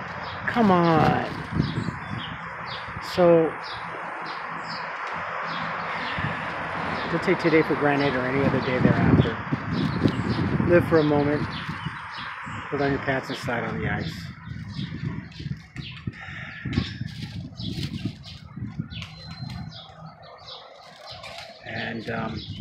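An elderly man talks close by in a calm, conversational voice.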